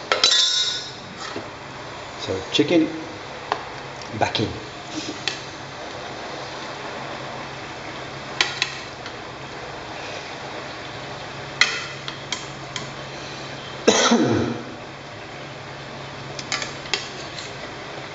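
Metal tongs clink against metal pots.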